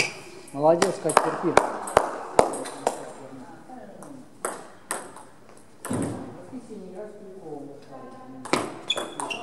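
A ping-pong ball clicks sharply on paddles and a table, echoing in a large hall.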